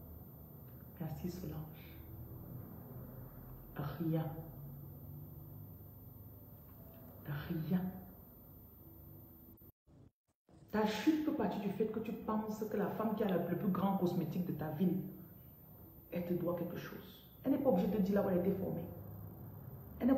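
A woman speaks calmly and close to the microphone, with pauses between phrases.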